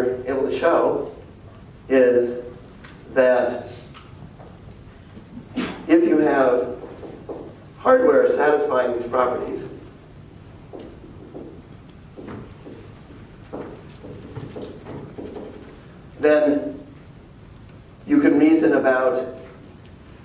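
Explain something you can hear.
A man speaks in bursts, lecturing.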